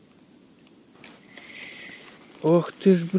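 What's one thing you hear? A fishing reel whirs briefly.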